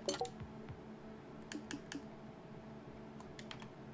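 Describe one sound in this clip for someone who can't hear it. Soft menu clicks tick as options are scrolled.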